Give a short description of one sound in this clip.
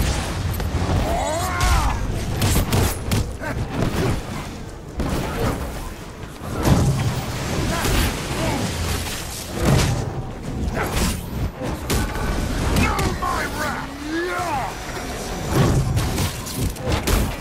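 Blasts and impacts boom again and again in a fierce fight.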